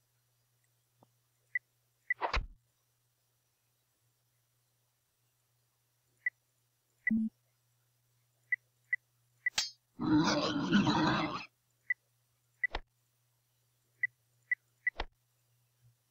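Sword blows clang in short, sharp bursts.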